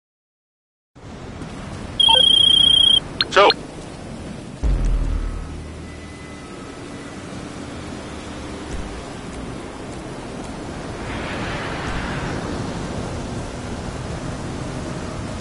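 Wind blows steadily outdoors.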